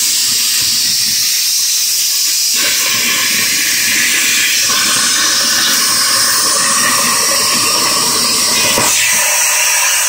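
A plasma cutter hisses loudly and steadily as it cuts through metal.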